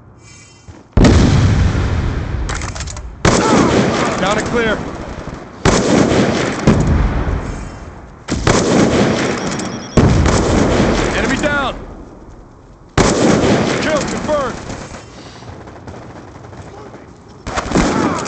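Rifle shots boom loudly, each with a long rolling echo.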